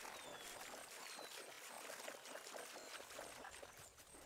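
Water splashes as an animal runs through a shallow stream.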